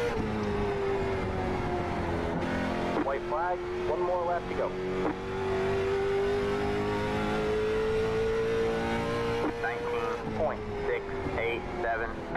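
A racing car engine drones steadily at high revs.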